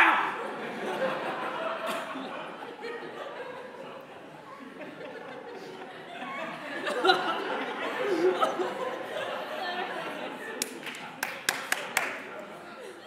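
A crowd of young men and women murmurs and chatters in a large echoing hall.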